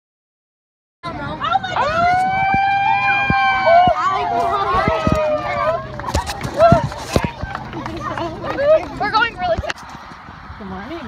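A crowd of young people chatters and cheers nearby outdoors.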